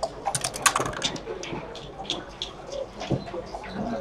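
Dice rattle in a cup and clatter onto a board.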